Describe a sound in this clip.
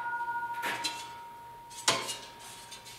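A metal sheet knocks against a metal bench.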